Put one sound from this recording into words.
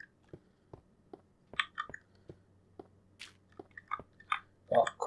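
Footsteps tap lightly on a hard floor.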